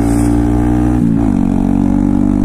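A motorcycle engine dips briefly in pitch at a gear change.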